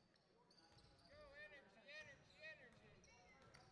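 A man calls out in a large echoing gym.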